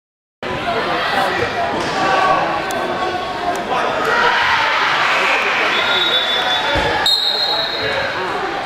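A crowd of players and spectators chatter in a large echoing gym.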